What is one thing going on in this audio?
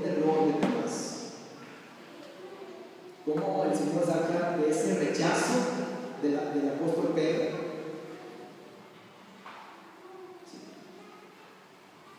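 A man speaks through a microphone and loudspeakers, echoing in a large hall.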